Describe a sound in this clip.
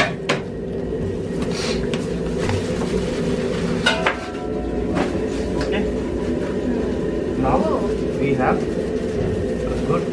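A bamboo mat rustles and clicks as food is rolled on it.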